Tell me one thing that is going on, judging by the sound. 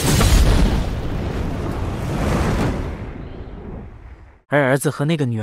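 A huge explosion roars and rumbles, then fades away.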